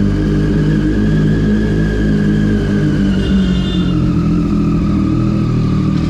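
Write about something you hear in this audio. A motorcycle engine revs briefly and settles.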